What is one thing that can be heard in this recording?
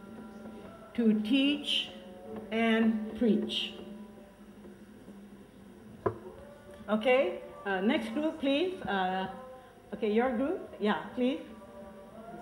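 An elderly woman speaks with animation.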